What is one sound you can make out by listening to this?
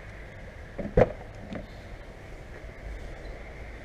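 A car door swings open.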